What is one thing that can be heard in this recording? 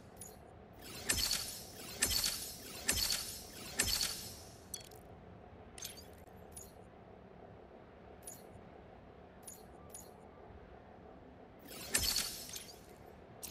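Bright electronic whooshes sound in quick bursts as upgrades unlock.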